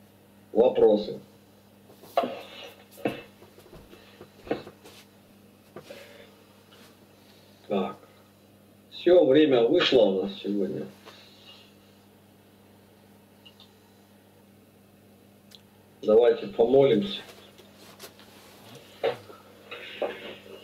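A man speaks calmly in short bursts over an online call.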